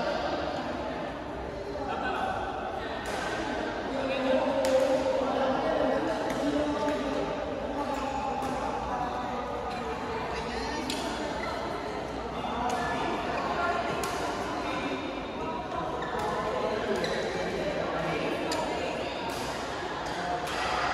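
Rackets strike shuttlecocks with sharp pops in a large echoing hall.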